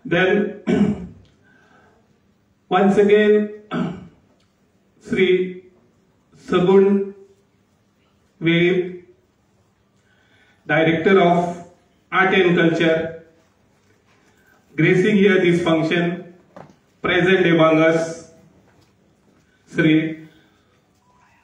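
A middle-aged man speaks through a microphone and loudspeakers in phrases, with pauses between them.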